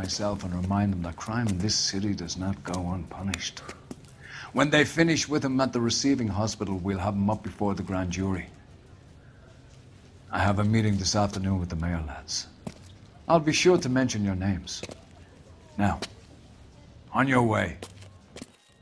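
A middle-aged man speaks calmly and firmly.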